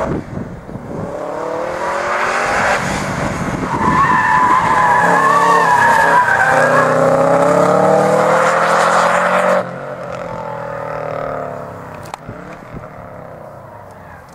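A car engine revs hard as the car speeds past and into the distance.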